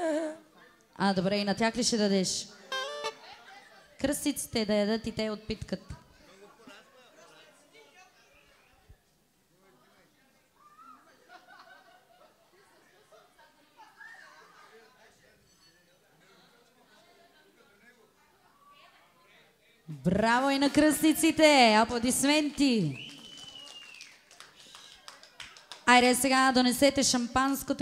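A woman sings loudly through a microphone in short bursts.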